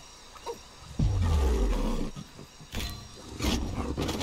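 A big cat snarls.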